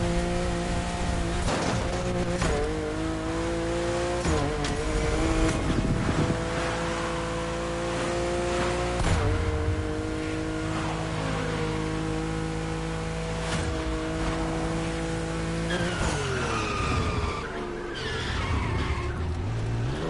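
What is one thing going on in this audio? A car engine roars steadily at high speed, shifting gears now and then.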